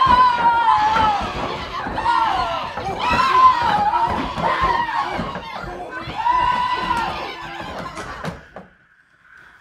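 Several performers sing loudly together, with echo.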